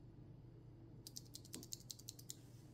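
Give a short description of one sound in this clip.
A key switch clicks rapidly as it is pressed.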